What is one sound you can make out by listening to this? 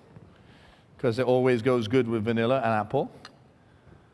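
A man talks calmly and clearly, close by.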